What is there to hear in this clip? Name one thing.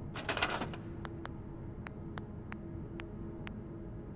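Short menu ticks click in a quick, uneven series.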